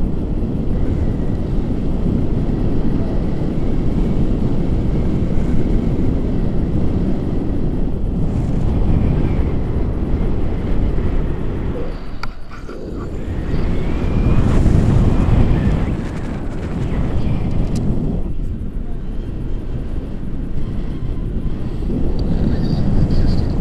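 Strong wind rushes and buffets loudly past close by.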